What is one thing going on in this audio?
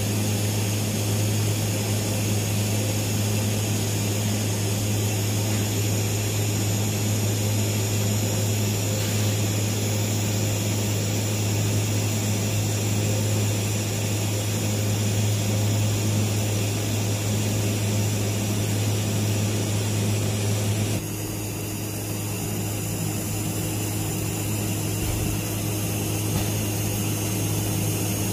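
A welding arc buzzes and crackles steadily.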